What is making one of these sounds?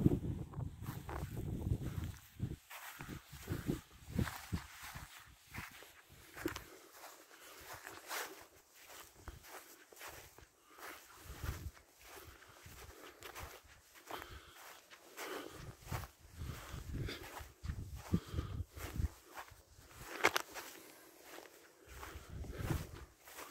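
Wind gusts across an open hillside and buffets the microphone.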